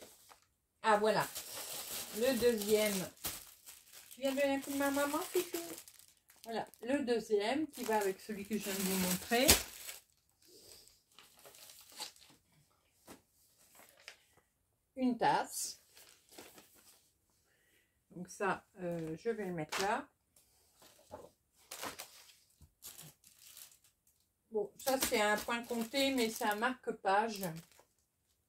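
Plastic packets rustle and crinkle as they are handled.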